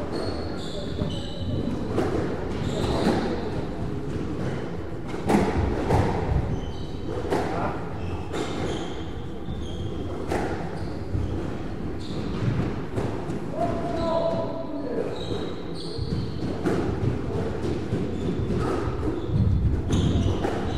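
A squash ball smacks sharply against the walls, echoing in a hard-walled court.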